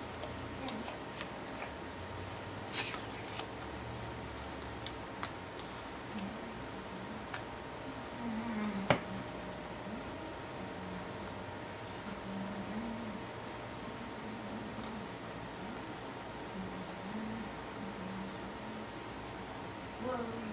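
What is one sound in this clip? Paper rustles and taps as it is handled.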